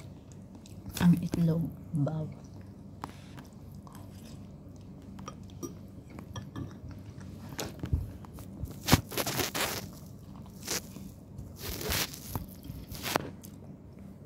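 A woman slurps noodles loudly, close by.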